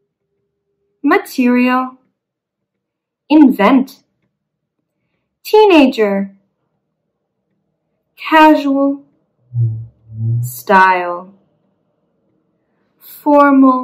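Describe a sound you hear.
A young woman speaks words slowly and clearly into a close microphone, pausing between each.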